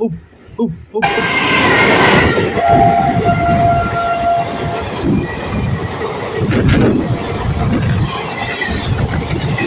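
A passenger train rushes past close by with a loud roar.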